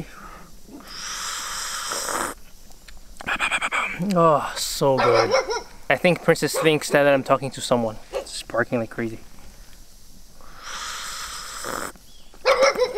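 A young man slurps a hot drink loudly.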